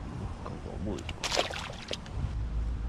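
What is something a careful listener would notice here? A fish drops back into the water with a splash.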